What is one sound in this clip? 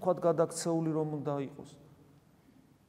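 A man speaks calmly into a microphone in a softly echoing room.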